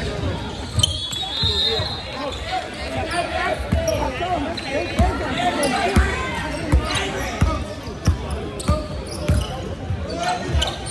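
A basketball bounces on a wooden floor with echoing thuds.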